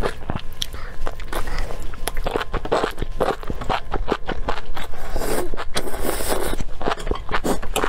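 A young woman slurps noodles loudly close to a microphone.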